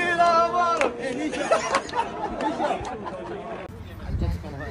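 Several young men laugh and cheer outdoors.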